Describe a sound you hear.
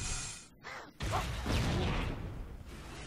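A heavy weapon fires with a loud blast.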